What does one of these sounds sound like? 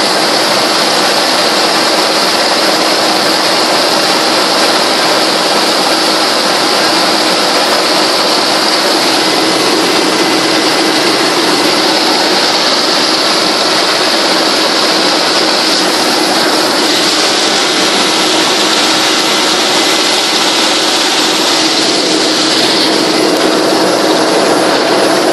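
A helicopter engine and rotors roar loudly and steadily inside the cabin.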